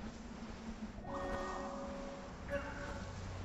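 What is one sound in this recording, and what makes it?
A bright musical chime rings out twice.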